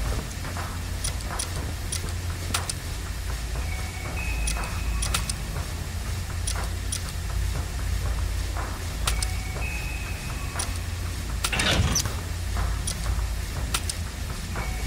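Sharp clicks tick now and then.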